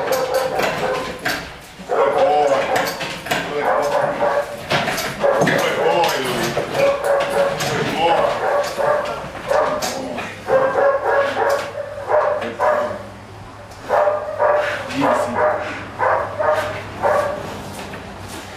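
A dog barks and growls loudly in an echoing room.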